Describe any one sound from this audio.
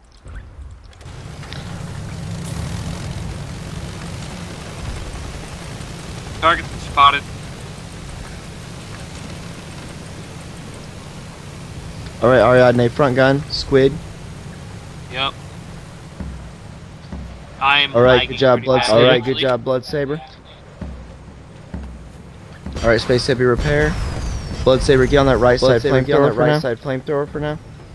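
An airship engine drones low and steady.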